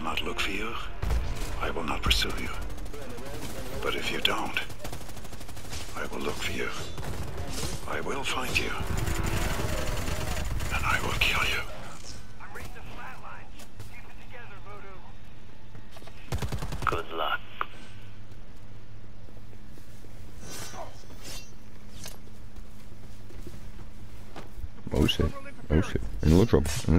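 Gunshots crack sharply in short bursts.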